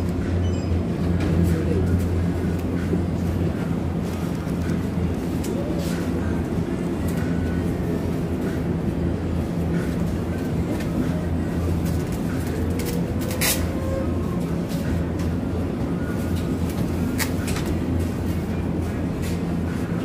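Refrigerated display cases hum steadily.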